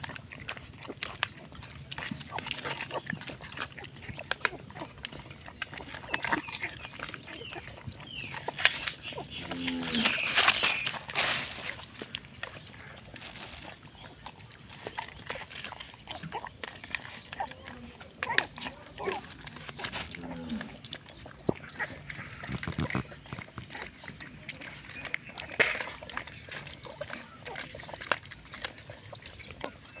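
Puppies lap and chew food noisily, close by.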